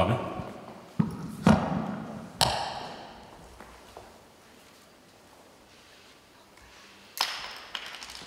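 A microphone thumps as a man handles it.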